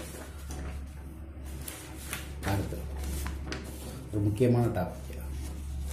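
A sheet of paper rustles as a page is turned.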